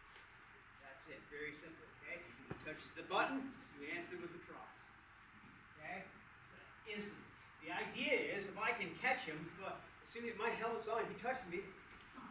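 A man speaks with animation to a group nearby.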